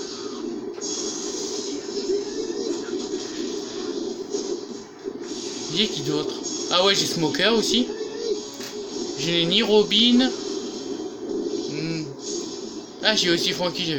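Video game battle effects crackle and whoosh with magical blasts.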